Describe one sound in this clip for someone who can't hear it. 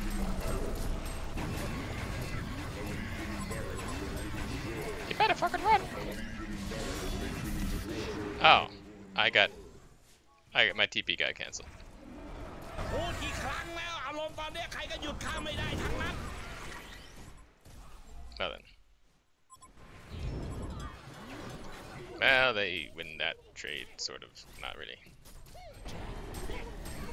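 Spell blasts and magic effects crackle and boom in a game battle.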